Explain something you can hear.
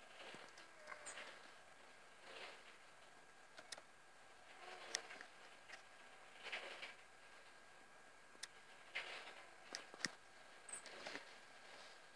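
A bird's claws tap and scrape on a hard surface.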